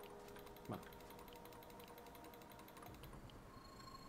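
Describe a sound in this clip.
A radiation detector clicks rapidly.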